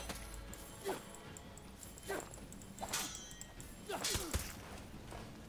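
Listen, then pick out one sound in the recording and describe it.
Swords clash and clang with metallic strikes.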